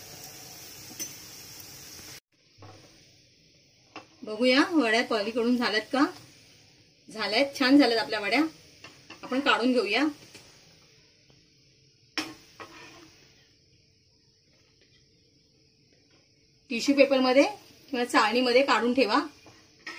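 Patties sizzle as they shallow-fry in oil.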